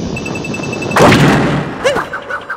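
A heavy thump and a burst ring out as a rocket lands.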